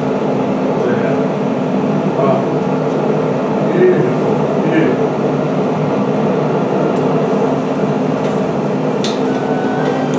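Metal tongs click against a stone slab.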